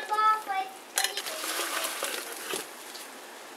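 Chunks of food splash into a pot of water.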